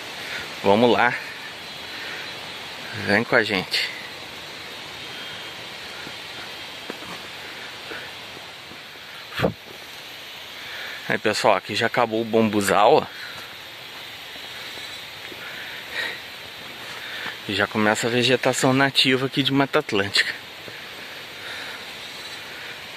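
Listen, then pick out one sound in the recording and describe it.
Footsteps crunch on dry leaves along a trail.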